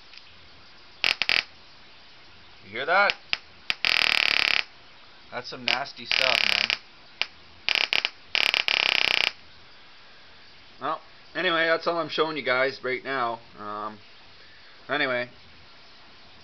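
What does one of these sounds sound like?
A small electronic circuit gives off harsh buzzing bursts and warbling chirps.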